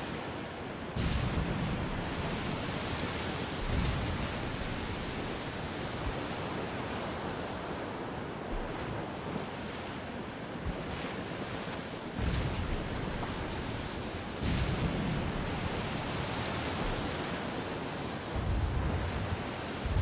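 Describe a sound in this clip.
Spray crashes as a sailing ship's bow plunges into waves.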